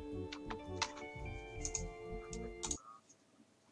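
A short electronic game tune plays.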